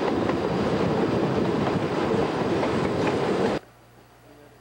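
A train rumbles and clatters loudly along the track, heard up close in the rushing wind.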